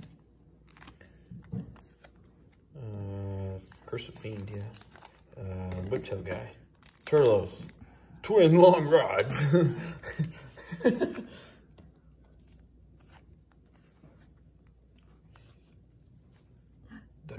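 Playing cards slide and rub softly against each other as they are handled.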